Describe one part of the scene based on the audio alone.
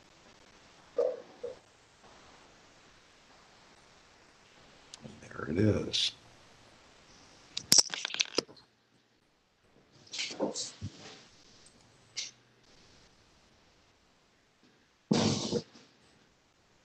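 A man speaks in short, broken bursts over an online call.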